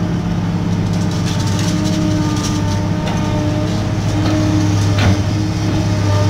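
An excavator bucket scrapes and knocks on rubble and soil.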